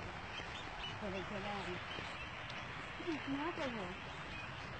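A young woman speaks close up.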